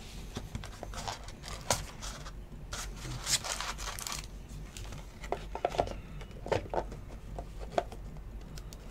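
Cards rustle and slap as hands shuffle through them.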